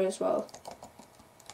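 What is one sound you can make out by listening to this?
A boy speaks briefly and calmly, close to a microphone.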